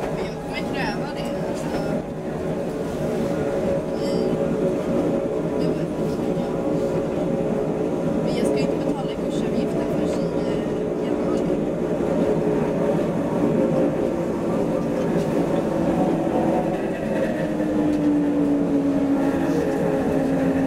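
A vehicle engine hums steadily and rumbles while driving.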